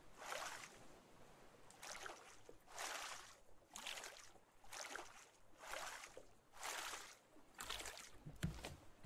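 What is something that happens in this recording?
A paddle splashes through water in steady, repeated strokes.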